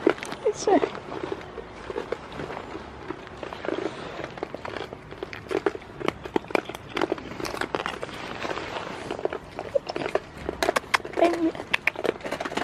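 Goat hooves patter over straw and dirt.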